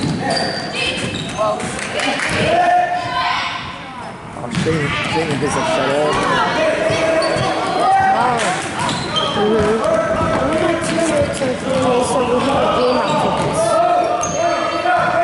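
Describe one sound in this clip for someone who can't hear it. Spectators talk and call out throughout a large, echoing hall.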